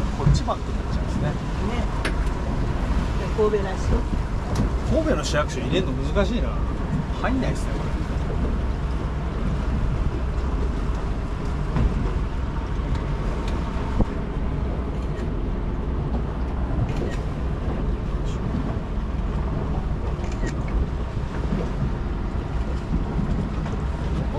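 A boat's engine rumbles steadily as the boat speeds over water.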